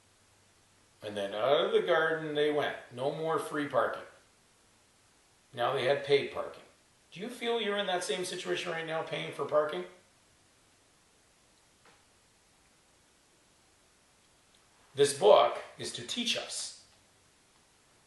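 An elderly man speaks calmly, close by, in short bursts with pauses.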